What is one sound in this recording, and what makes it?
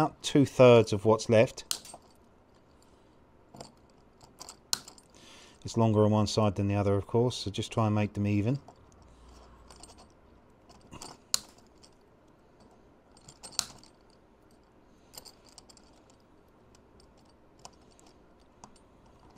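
Small metal links click and clink as pliers work them.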